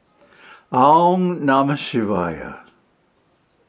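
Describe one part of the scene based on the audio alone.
An elderly man speaks warmly and close to a microphone.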